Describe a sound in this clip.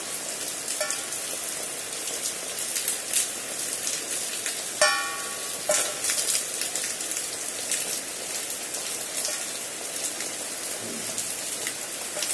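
Rain falls steadily outdoors, with drops pattering close by.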